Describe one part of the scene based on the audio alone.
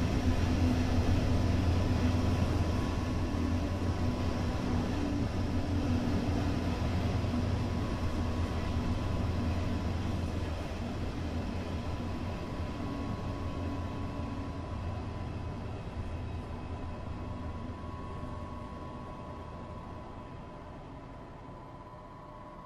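A train rumbles along the tracks, heard from inside a carriage, slowly slowing and growing quieter.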